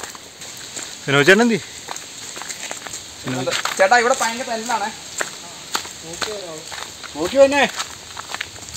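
A young man speaks close to the microphone with animation, outdoors.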